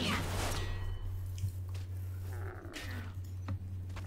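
A sword strikes a stag in quick blows.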